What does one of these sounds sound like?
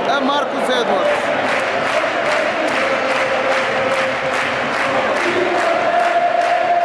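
A stadium crowd claps in a steady rhythm.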